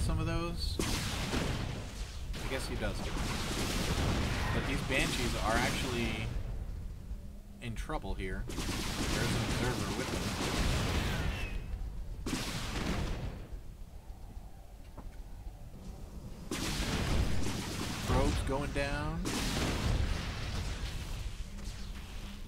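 Futuristic weapons fire and blasts crackle in a fierce battle.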